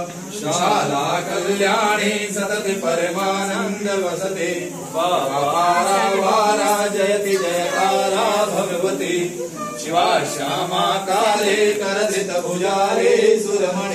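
Men and women sing a slow hymn together close by.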